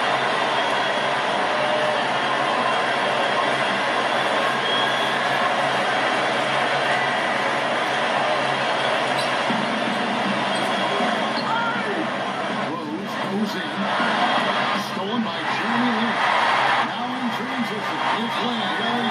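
A large crowd roars and cheers steadily in an echoing arena.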